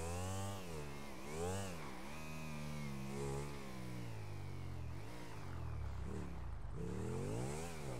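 A motorcycle engine revs up and down repeatedly.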